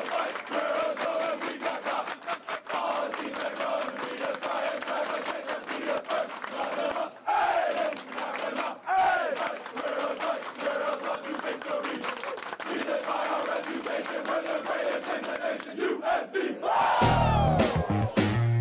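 A crowd of young men shouts and chants loudly in an echoing room.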